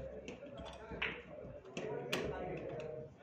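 Snooker balls click together sharply.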